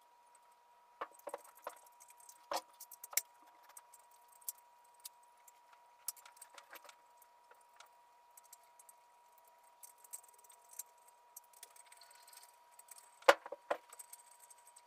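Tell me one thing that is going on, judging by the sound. Metal tools clink against an engine cylinder head.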